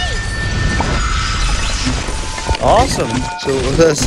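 A short cheerful game jingle plays.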